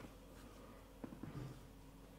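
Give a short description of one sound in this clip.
A joint cracks sharply during a spinal adjustment.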